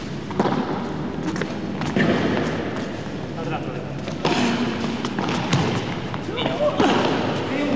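Paddle rackets strike a ball with sharp pops.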